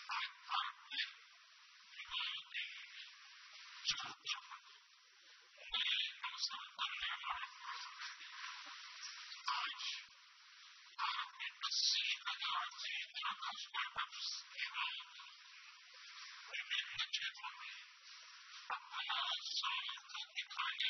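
An elderly man speaks calmly into a microphone, heard through a thin, tinny broadcast.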